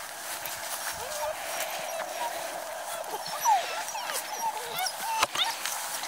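Puppies yelp and squeal as they play.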